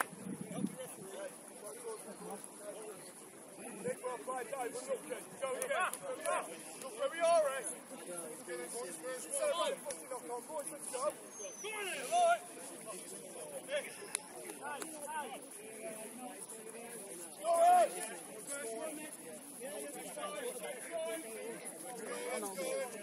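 Young players shout across the field in the distance.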